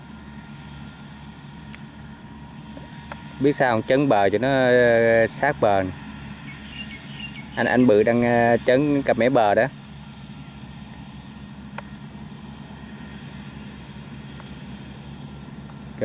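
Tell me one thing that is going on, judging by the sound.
A tractor engine rumbles steadily at a distance.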